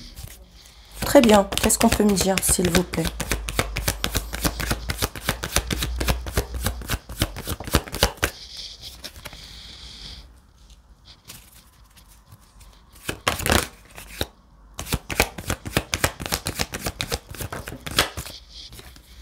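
Cards riffle and snap rapidly as a deck is shuffled.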